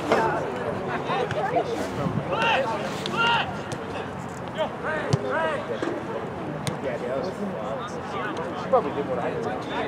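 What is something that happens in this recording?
Players shout to each other across an open field.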